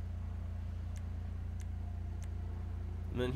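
Soft menu clicks tick a few times.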